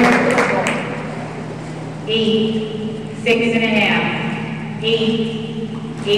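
A swimmer splashes while paddling to the edge of the pool.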